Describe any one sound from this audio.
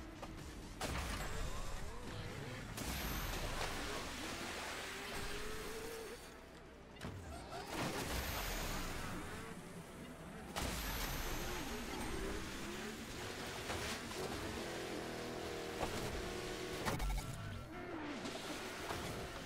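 Motorbike engines roar and whine as they race.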